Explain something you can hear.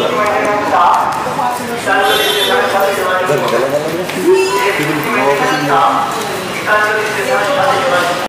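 Footsteps tap down concrete stairs.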